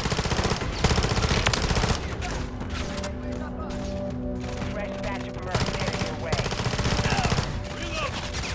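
A rifle fires in rapid, loud bursts.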